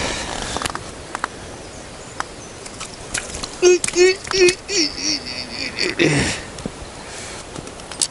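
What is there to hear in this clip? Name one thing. A fish flaps and slaps against pebbles.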